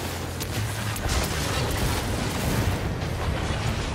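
Debris crashes and scatters.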